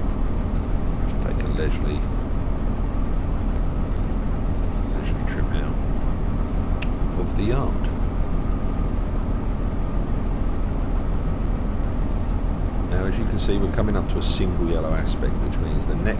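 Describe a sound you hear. A truck engine rumbles low and steady as the truck rolls slowly.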